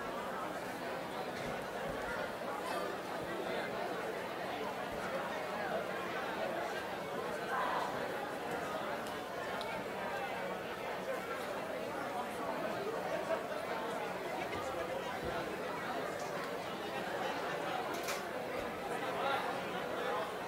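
A crowd of children chatters in a large echoing hall.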